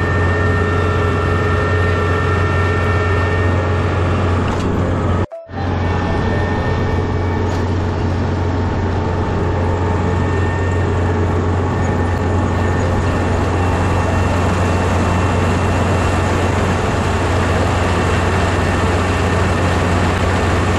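A harvester's cutters rustle and thrash through dry rice stalks.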